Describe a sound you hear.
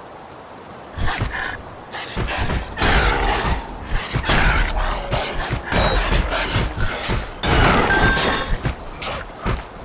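Wolves snarl and growl.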